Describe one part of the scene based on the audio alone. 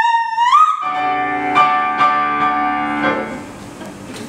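A piano plays chords beneath the singing.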